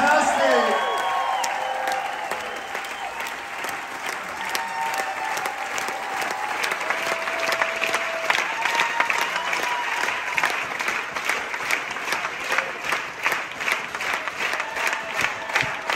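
A live band plays lively dance music in a large echoing hall.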